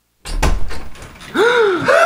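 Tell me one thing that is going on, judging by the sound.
A young man knocks on a door.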